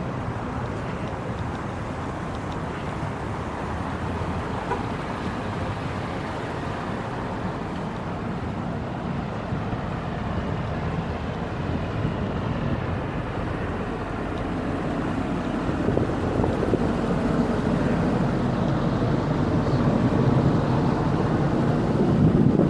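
Footsteps tap on cobblestones close by.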